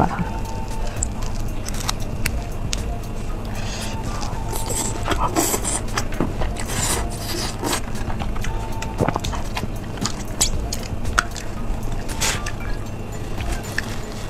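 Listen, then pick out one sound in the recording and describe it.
A young woman slurps and chews food noisily close to a microphone.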